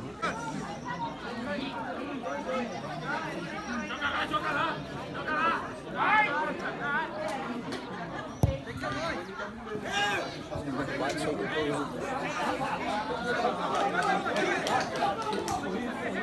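Several men shout and talk outdoors across a playing field.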